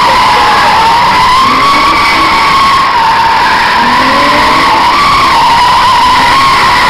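Tyres screech loudly and steadily as cars drift.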